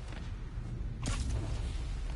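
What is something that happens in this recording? A heavy thud sounds as a body lands on a metal floor.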